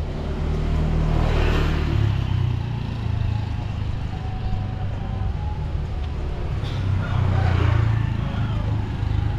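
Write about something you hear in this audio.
Motorbikes pass close by.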